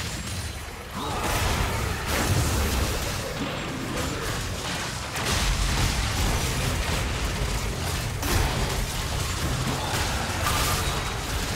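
Video game spell effects crackle and boom during a battle.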